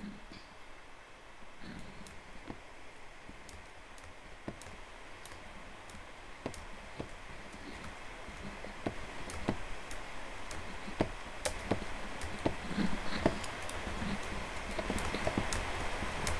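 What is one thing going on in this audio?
Footsteps tap on stone.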